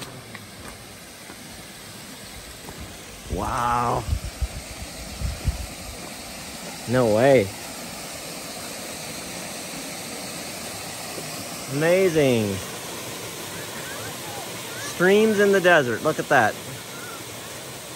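A waterfall splashes and rushes steadily, growing louder.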